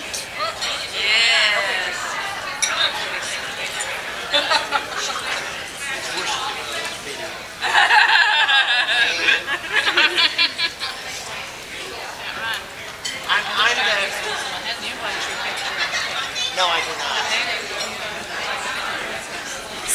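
Adults chat and laugh nearby in a busy, echoing room.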